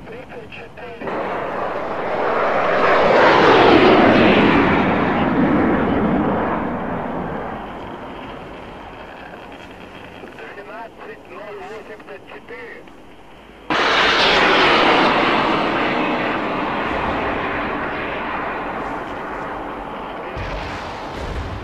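A jet engine roars loudly as a jet flies past and fades away.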